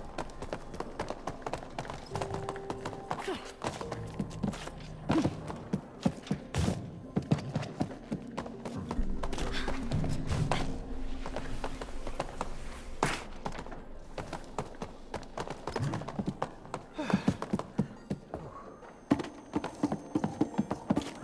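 Quick light footsteps patter on wooden boards.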